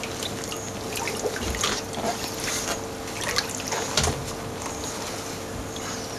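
Rubber boots tread and splash in muddy water.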